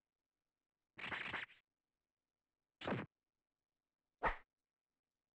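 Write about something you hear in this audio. A menu chimes briefly a few times.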